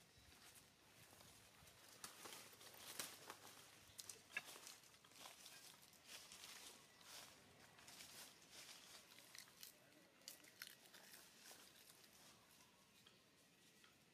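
Dry leaves rustle as monkeys shift on the ground.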